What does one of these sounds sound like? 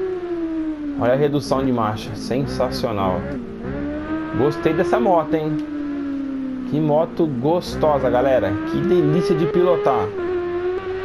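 A motorcycle engine pops and crackles when slowing down.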